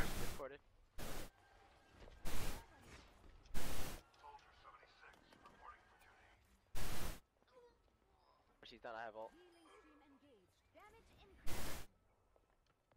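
A small gun fires in short bursts.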